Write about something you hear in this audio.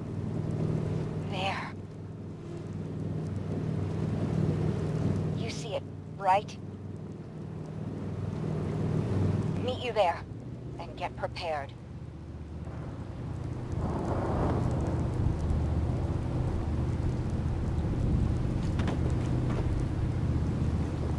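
A boat engine rumbles low and steady.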